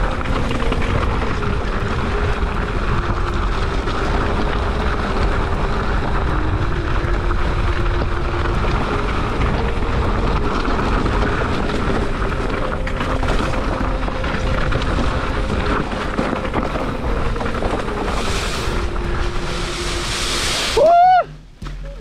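Bicycle tyres crunch and rattle over a rocky dirt trail.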